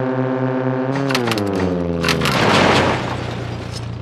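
A car crashes with a burst of loud knocks and a crunch.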